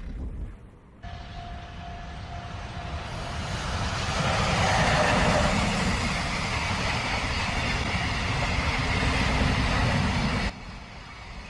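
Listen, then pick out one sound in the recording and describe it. A steam locomotive rumbles and chugs along the tracks.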